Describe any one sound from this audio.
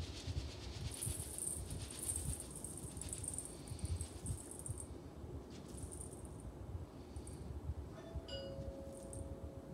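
Dry oats pour and patter into a metal bowl.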